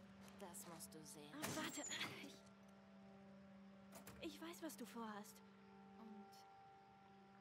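A young woman speaks softly and close.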